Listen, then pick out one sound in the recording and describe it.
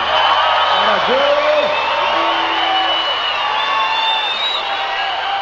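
A large crowd cheers loudly outdoors.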